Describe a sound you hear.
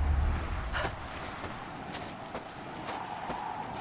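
A body whizzes down a zip line.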